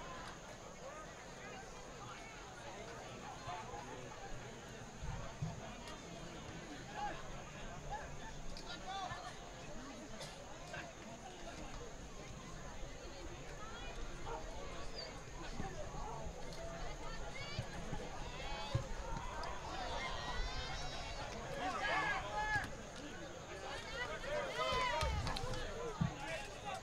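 A crowd of spectators chatters and calls out across an open field.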